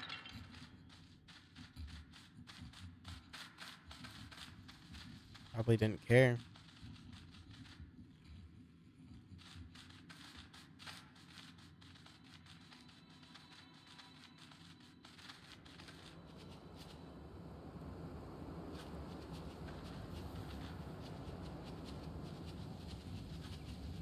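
A wolf's paws patter quickly over the ground.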